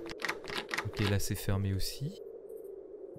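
A man talks quietly into a close microphone.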